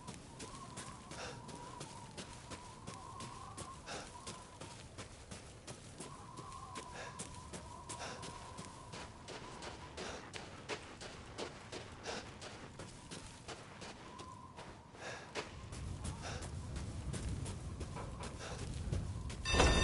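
Footsteps crunch through snow and dry grass.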